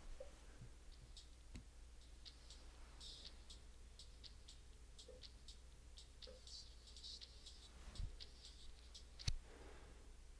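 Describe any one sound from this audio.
Small objects click and tap softly as they are handled.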